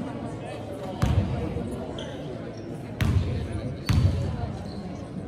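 A basketball thumps as it bounces on a wooden floor.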